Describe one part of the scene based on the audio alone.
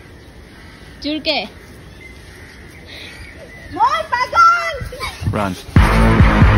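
A young girl laughs and calls out outdoors.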